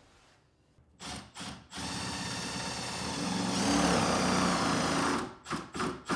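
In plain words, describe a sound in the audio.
A power drill whirs in steady bursts.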